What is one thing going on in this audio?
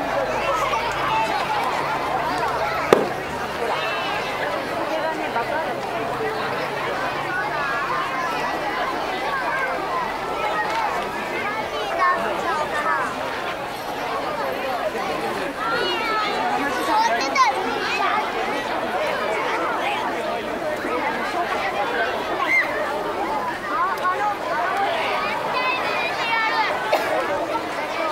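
A large outdoor crowd chatters and calls out loudly throughout.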